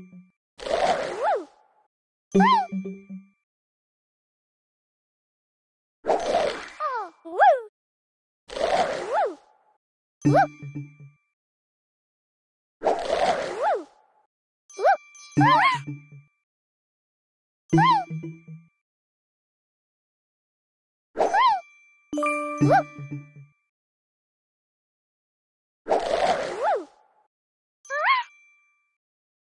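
Cheerful game chimes ring out in short bursts.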